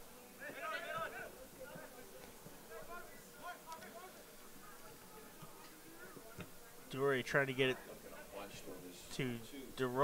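Young men shout to each other outdoors across an open field.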